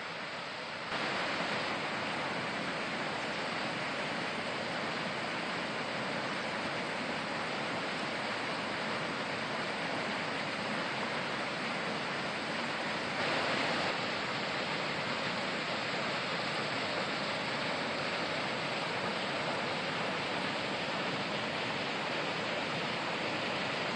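Water rushes steadily over small weirs.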